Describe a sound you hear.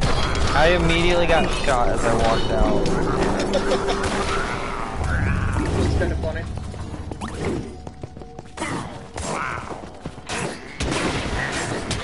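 Blows strike and clash in a quick fight.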